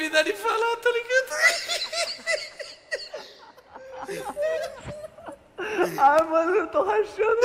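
A young man laughs loudly and close to a microphone.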